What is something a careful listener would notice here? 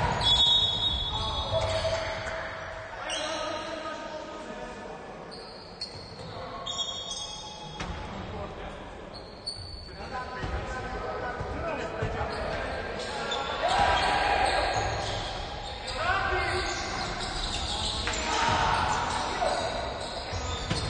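Sneakers squeak sharply on a hard court, echoing in a large hall.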